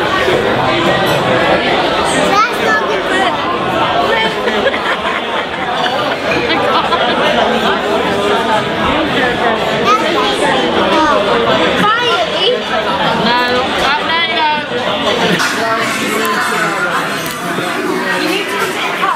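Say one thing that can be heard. A crowd chatters in a busy, noisy room.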